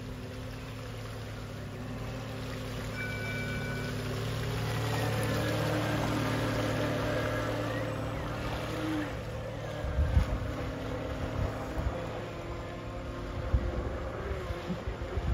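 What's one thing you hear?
The electric motor of a radio-controlled model speedboat whines, growing louder as it passes close by and then fading.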